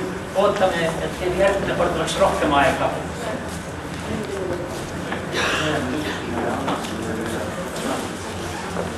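Men talk and laugh nearby in a room with some echo.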